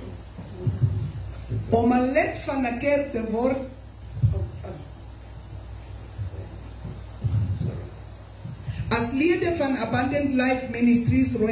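A woman speaks over a microphone and loudspeakers.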